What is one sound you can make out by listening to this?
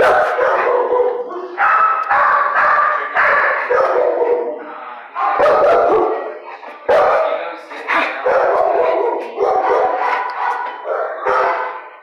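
A dog whines and howls in repeated loud cries close by.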